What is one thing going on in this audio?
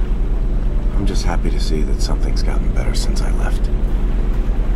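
A young man speaks calmly and quietly.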